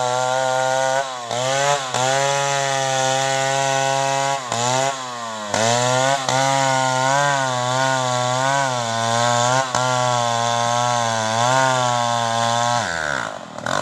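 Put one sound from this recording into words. A chainsaw engine runs close by, revving up and down.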